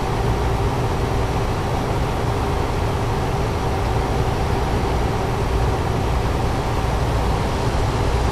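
A truck engine hums steadily at speed.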